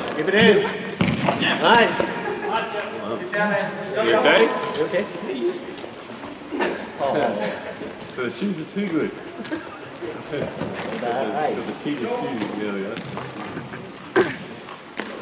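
Hockey sticks clack against a ball.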